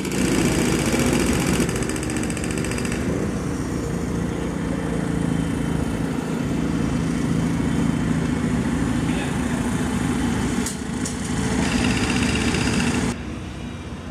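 A large diesel engine idles nearby with a steady rumble.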